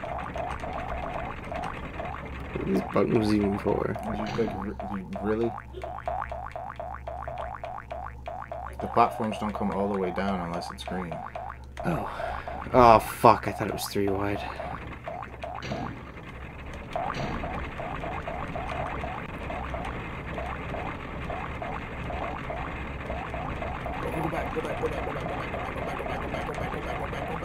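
Upbeat electronic game music plays steadily.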